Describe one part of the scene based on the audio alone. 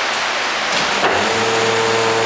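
A button clicks on a control panel.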